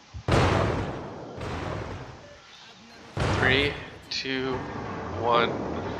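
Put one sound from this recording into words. Heavy naval guns boom in a video game.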